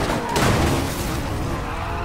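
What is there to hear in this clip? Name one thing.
Car tyres screech as a car drifts.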